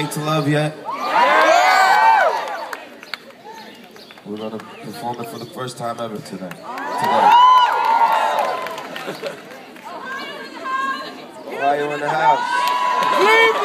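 A crowd of mostly young women screams and cheers.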